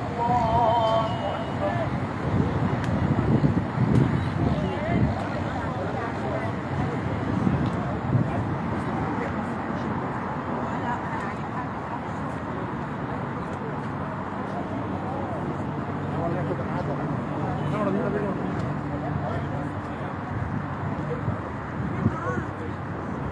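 Several men talk at once outdoors, some of them loudly.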